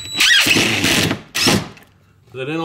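A cordless drill whirs briefly.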